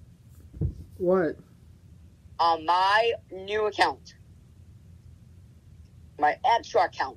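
A young man speaks close to the microphone in short bursts.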